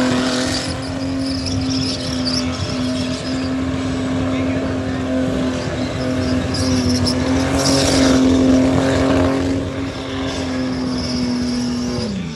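A car engine roars steadily at high revs close by.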